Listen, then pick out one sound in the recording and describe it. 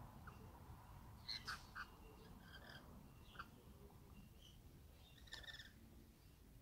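Parrots chirp and squawk nearby in short bursts.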